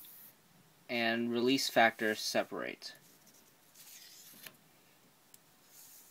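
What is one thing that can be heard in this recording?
Paper pieces slide and rustle softly on a table.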